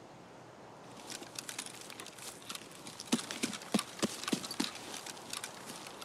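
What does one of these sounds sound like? Footsteps crunch through grass and brush.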